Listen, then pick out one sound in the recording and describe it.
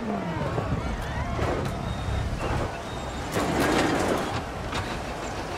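A car crashes and rolls over with loud metal bangs and scraping.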